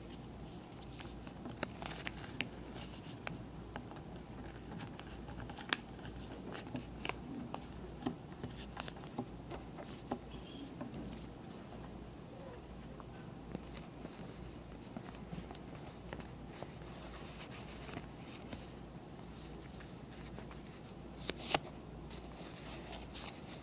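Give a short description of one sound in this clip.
Paper crinkles and rustles as hands fold it.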